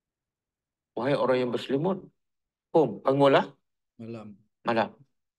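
An elderly man speaks calmly and clearly into a microphone.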